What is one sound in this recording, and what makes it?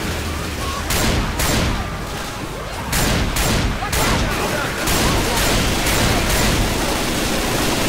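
A shotgun fires in repeated loud blasts.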